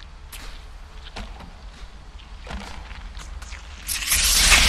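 Light footsteps and jumps patter softly.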